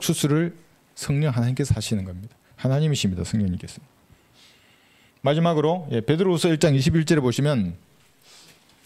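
A middle-aged man speaks clearly into a microphone, lecturing in short bursts.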